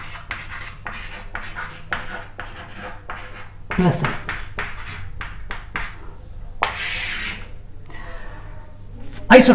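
Chalk scratches and taps on a board in quick strokes.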